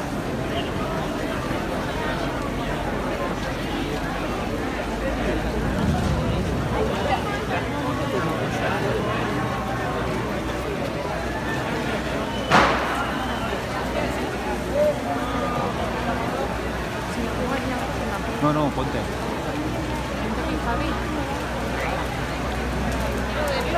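A large crowd chatters and shouts nearby outdoors.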